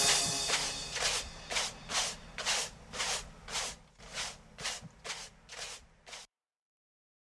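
A broom sweeps in quick, rhythmic strokes.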